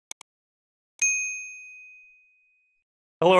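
A chime rings and fades.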